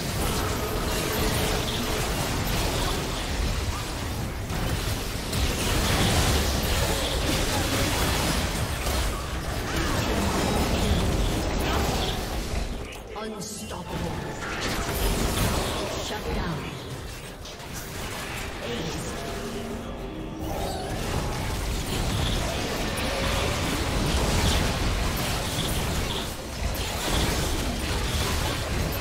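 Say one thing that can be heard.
Magic blasts, clashing hits and explosions burst in a fast video game battle.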